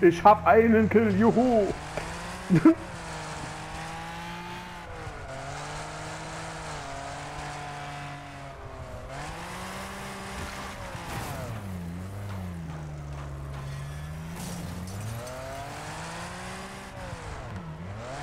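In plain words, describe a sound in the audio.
A car engine revs and roars, rising and falling in pitch.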